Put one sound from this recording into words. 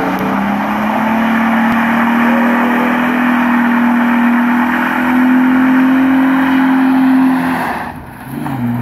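Tyres screech as they spin on the road.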